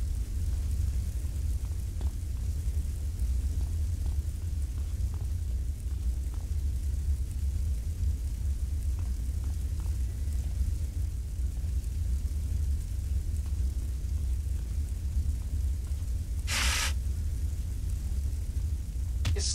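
Flames roar and crackle steadily.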